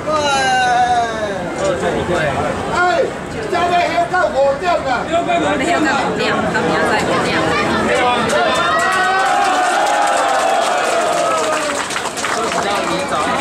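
A crowd of men chant and shout together close by.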